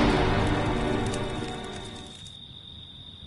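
A deep, ominous death sting swells and then fades away.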